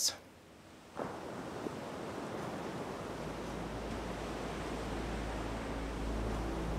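Sea waves wash gently against the shore.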